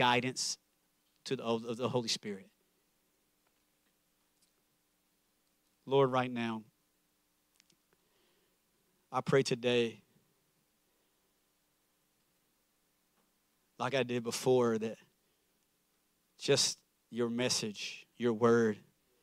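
A man speaks into a microphone in short bursts with long pauses.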